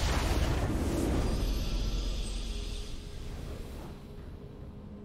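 A triumphant game fanfare rings out and slowly fades.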